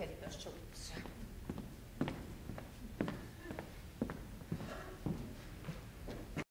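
Footsteps knock on a wooden floor.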